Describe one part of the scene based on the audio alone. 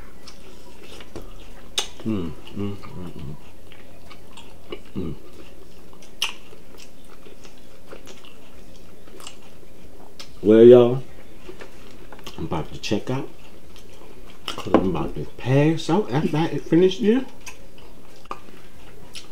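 A middle-aged man chews food with soft smacking sounds.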